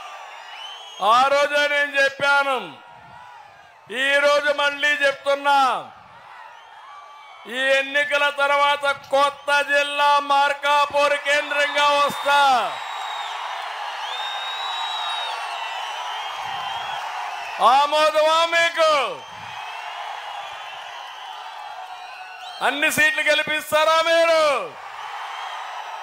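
An elderly man speaks forcefully through a loudspeaker system, in short bursts.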